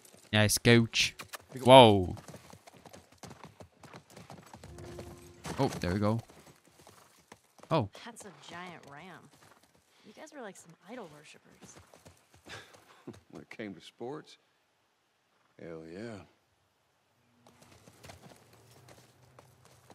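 A horse's hooves clop slowly on the ground.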